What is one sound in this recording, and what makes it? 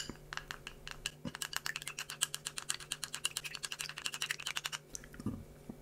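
Chopsticks clink rapidly against a glass bowl.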